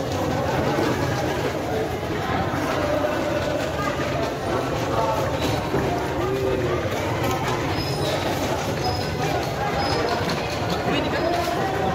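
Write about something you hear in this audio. A crowd of people chatters loudly all around in a large echoing hall.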